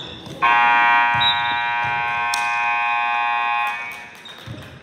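A loud buzzer sounds steadily for a few seconds in a large echoing hall.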